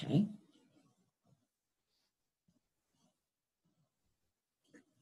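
A cloth rubs softly against a face.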